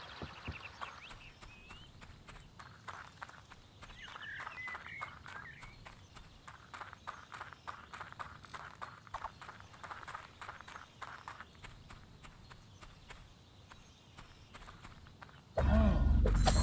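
Footsteps patter quickly along a dirt path.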